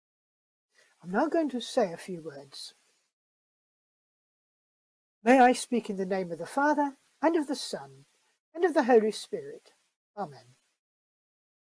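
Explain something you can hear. An older woman speaks calmly into a microphone, as if on an online call.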